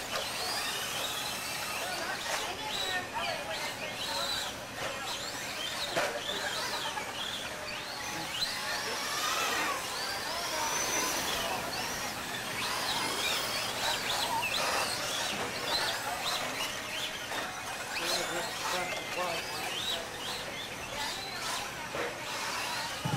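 Small electric toy cars whine at high pitch as they race and speed up.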